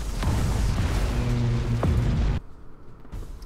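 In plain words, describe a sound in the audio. Laser weapons fire loudly in rapid bursts.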